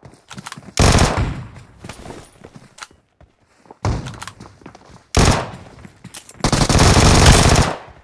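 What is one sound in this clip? Footsteps thud quickly across a hard surface.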